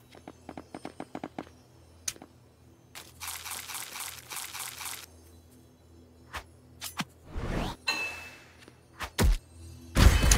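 Blocks are placed with quick, soft clicks.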